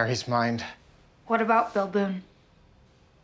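A young woman speaks softly and tensely, close by.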